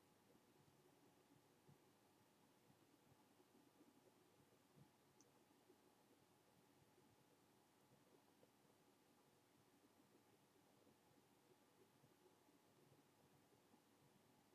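Plastic toy pieces click and rattle softly in fingers.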